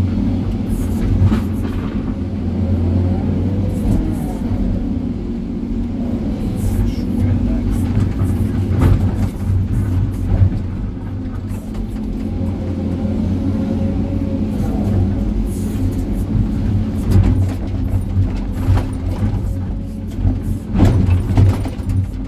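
Rocks and soil clatter and thud as the bucket digs and dumps.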